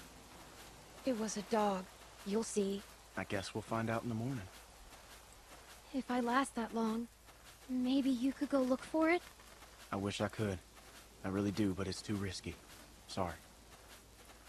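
A man speaks calmly, close by.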